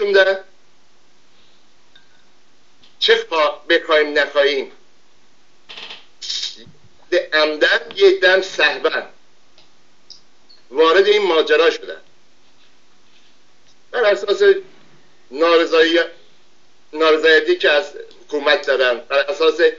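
An elderly man speaks calmly into a microphone, in short bursts with pauses.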